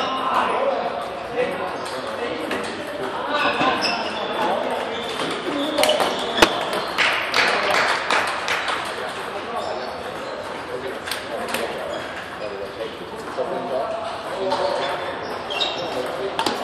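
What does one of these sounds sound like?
A table tennis ball clicks back and forth off paddles and a table.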